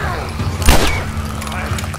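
A gunshot cracks loudly.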